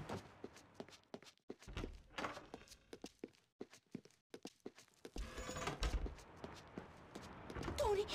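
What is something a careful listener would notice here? Footsteps tap steadily on a wooden floor.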